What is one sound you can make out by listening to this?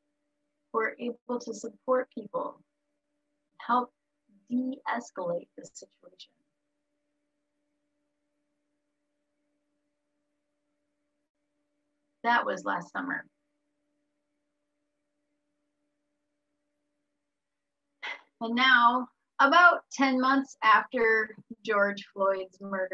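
A woman speaks calmly through an online call, with long pauses.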